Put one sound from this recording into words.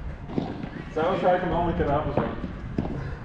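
Men's voices call out on the court.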